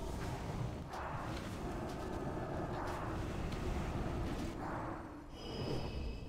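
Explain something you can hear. Magic blasts and clashes of a fantasy battle crackle and rumble.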